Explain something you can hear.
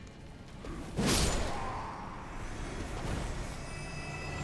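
A spirit creature collapses with a burst of shimmering magic.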